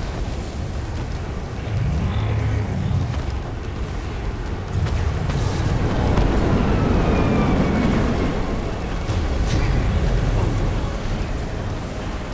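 A motorboat engine roars steadily.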